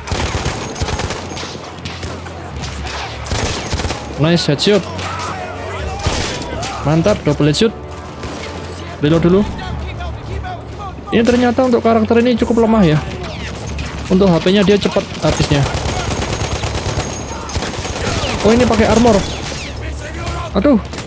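Gunfire rattles and bangs in bursts.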